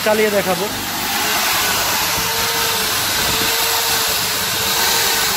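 Electric drills whir as they bore into a board.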